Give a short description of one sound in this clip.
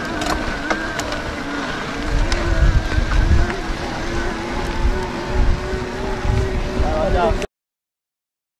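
Bike tyres crunch over a dirt trail.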